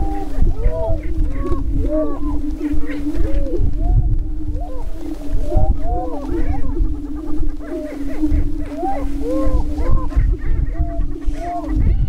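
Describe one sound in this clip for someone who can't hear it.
Prairie chickens cackle and whoop in short rising and falling calls.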